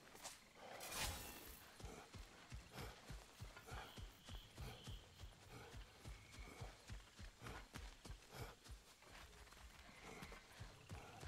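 Heavy footsteps tread steadily on a dirt path.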